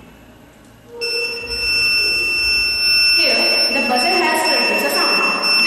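An electronic buzzer sounds a steady, high tone.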